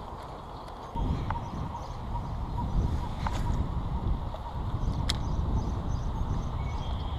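A fishing reel clicks and rattles as it is cranked.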